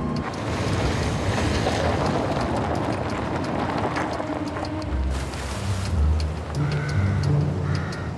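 A van engine rumbles as the van drives over rough ground.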